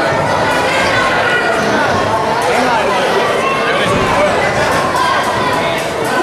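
A crowd chatters and calls out in a large echoing hall.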